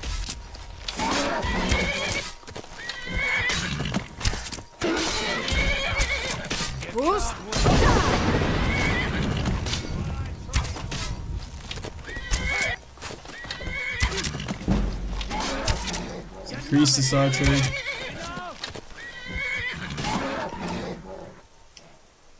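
A bowstring creaks and twangs as arrows are loosed.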